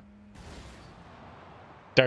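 A loud explosion booms and rumbles.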